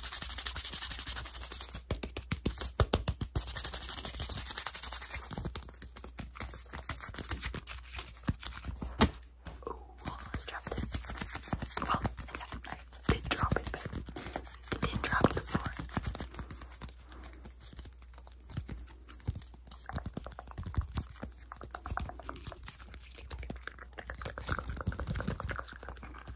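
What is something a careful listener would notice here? Fingers rustle and tap on crinkly paper close to a microphone.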